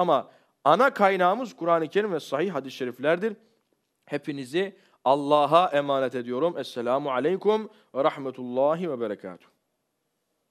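A young man speaks expressively into a close microphone, reading aloud.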